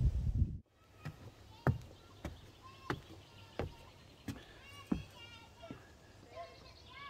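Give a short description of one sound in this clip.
Footsteps thud on wooden stairs.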